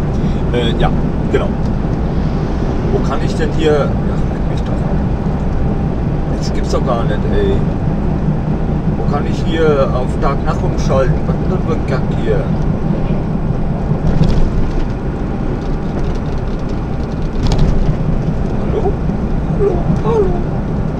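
A diesel truck engine drones from inside the cab while cruising at highway speed.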